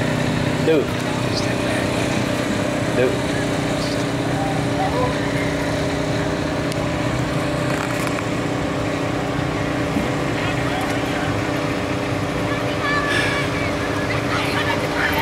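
A pickup truck's engine rumbles steadily nearby.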